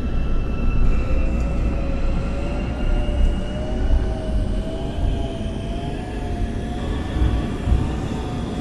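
A train's electric motor whines, rising steadily in pitch as the train speeds up.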